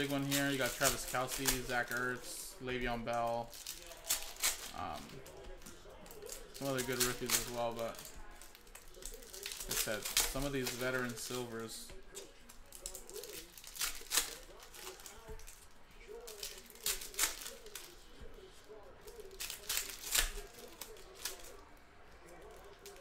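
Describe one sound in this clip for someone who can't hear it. Plastic card wrappers crinkle and rustle in hands.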